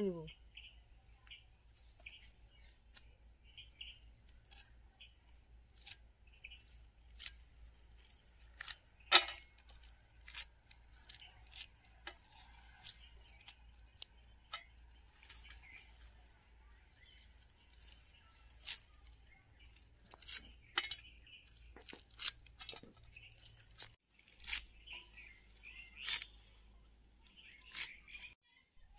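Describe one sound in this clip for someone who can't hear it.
A curved blade snaps through leafy stems with sharp, irregular clicks.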